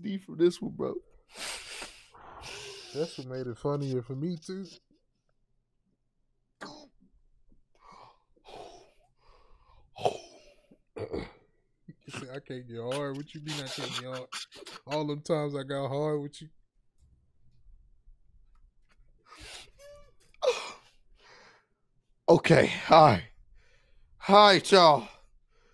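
A second man laughs loudly into a close microphone.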